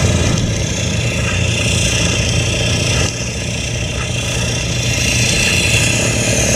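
An engine idles nearby with a steady low rumble.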